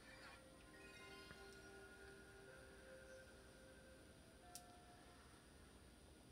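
A game console's startup chime plays softly.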